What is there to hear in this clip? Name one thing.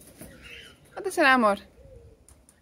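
A cockatiel gives a loud, quick falling whistle.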